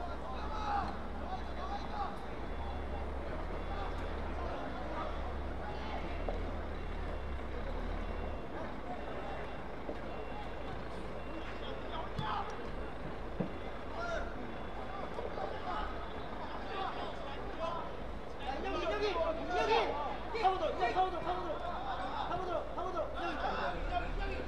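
Young players shout to each other across an open pitch.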